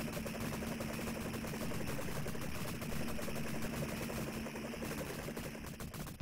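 Explosions boom in an arcade game.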